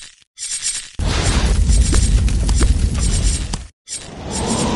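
A burst of fire roars loudly.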